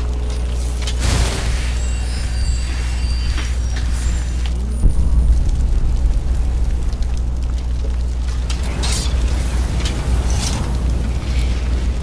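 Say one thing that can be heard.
Flames roar and crackle in bursts.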